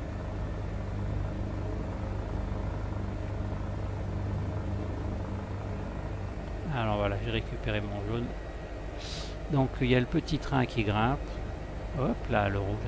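A helicopter engine and rotor hum steadily.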